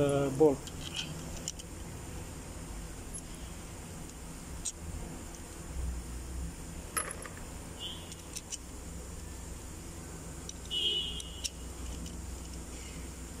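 Small metal engine parts click and tap together.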